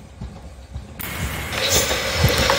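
A train approaches along the tracks, its rumble growing louder.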